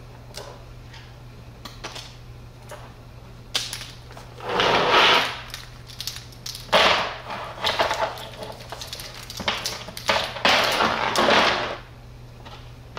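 Bundled cables rustle and clatter as they are handled.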